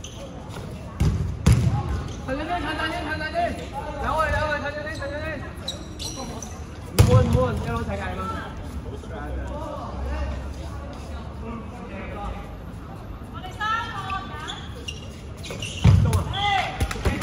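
A ball thumps loudly as it is hit and bounces off the floor.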